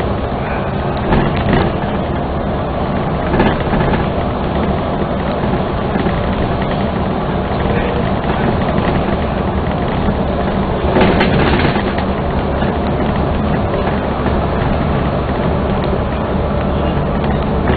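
A bus engine hums steadily while driving along a highway.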